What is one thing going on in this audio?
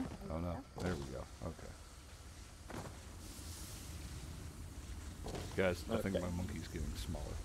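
Steam hisses from a vent.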